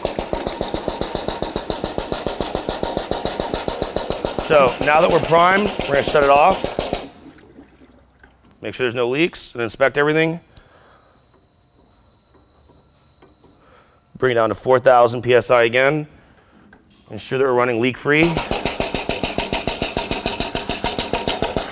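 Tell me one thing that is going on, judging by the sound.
A motorised pump runs with a fast, steady pulsing chug.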